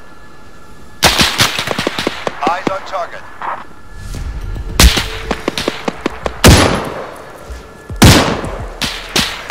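A rifle fires loud, sharp shots that echo away.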